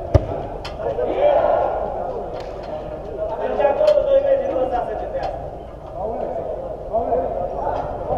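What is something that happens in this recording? Men shout to each other across the pitch in a large echoing dome.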